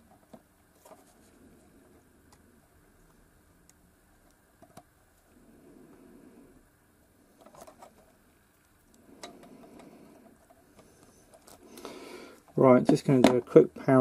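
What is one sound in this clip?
Pliers click and scrape faintly against small metal pins.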